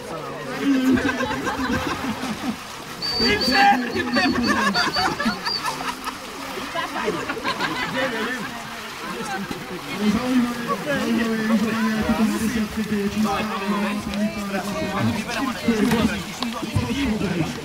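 Water splashes as men scoop and wash in a shallow river.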